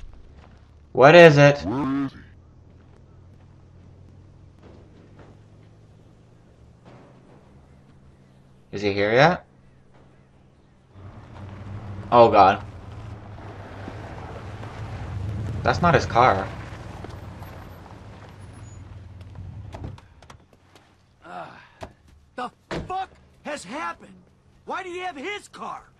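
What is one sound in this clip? A man speaks sharply and with agitation nearby.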